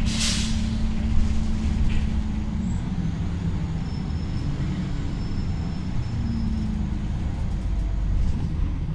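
A bus body rattles and rumbles over the road.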